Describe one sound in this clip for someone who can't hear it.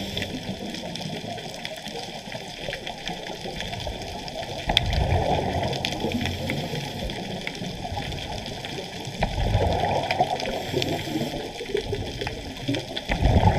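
A diver's breathing bubbles rumble and gurgle underwater.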